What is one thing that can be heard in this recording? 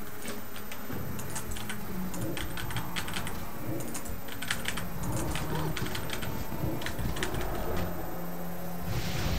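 Sword strikes and spell effects clash and crackle in quick bursts.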